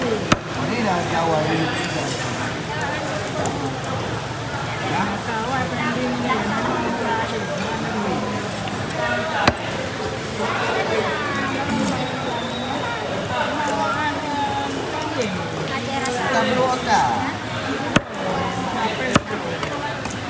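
A heavy knife knocks sharply against a wooden board.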